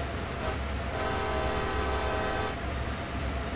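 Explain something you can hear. A locomotive horn blares for a moment.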